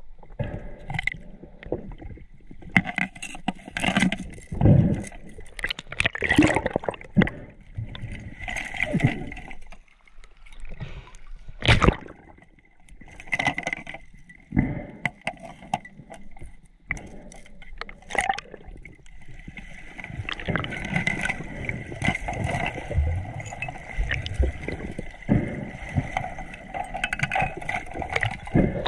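Water sloshes and gurgles, heard muffled from underwater.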